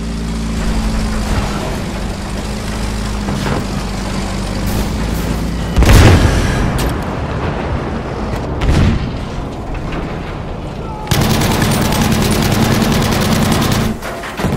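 A heavy tank engine rumbles and drones steadily.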